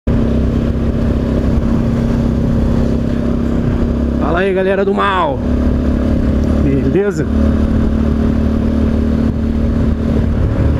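A motorcycle engine hums steadily, revving up and down between gear changes.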